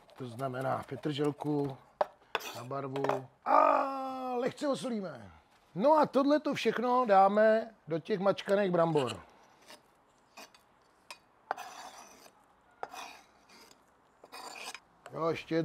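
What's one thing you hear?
A knife chops on a wooden board with quick taps.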